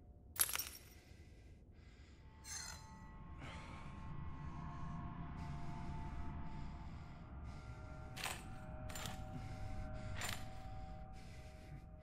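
A sheet of paper rustles as it is picked up and put down.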